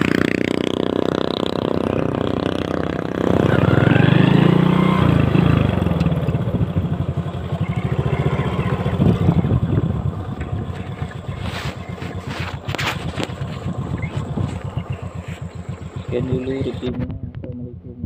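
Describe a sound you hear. A motorcycle engine hums and putters steadily while riding.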